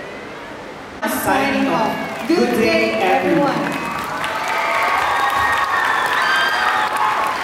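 A large choir sings loudly in an echoing hall.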